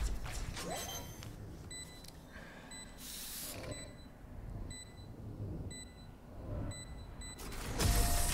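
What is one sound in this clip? A device beeps with short, evenly spaced tones.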